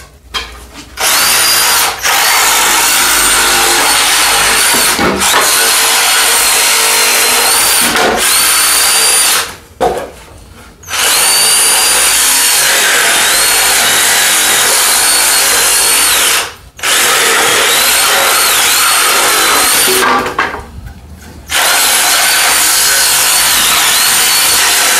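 A cordless angle grinder whines loudly, cutting through nails in wood in bursts.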